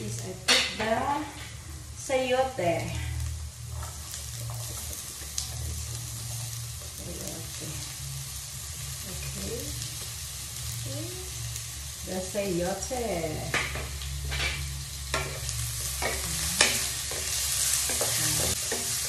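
Vegetables sizzle in a hot pan.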